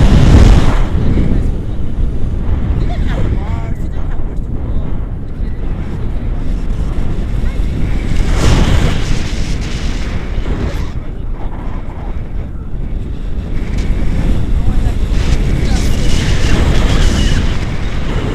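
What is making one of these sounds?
Wind rushes and buffets loudly against a microphone outdoors.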